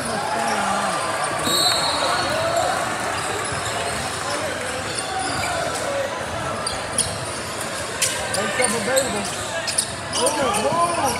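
Sneakers squeak sharply on a gym floor, echoing in a large hall.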